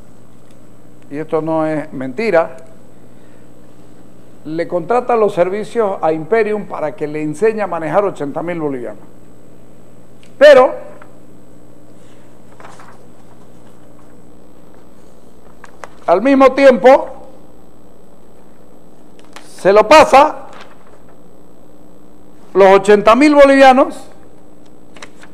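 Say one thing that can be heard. Sheets of paper rustle as they are handled.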